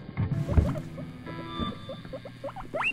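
An electric guitar plays.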